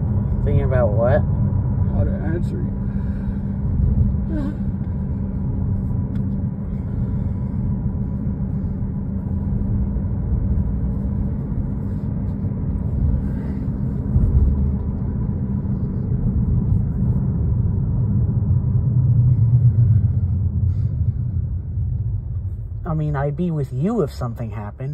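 A car engine hums with a low road rumble from inside a moving car.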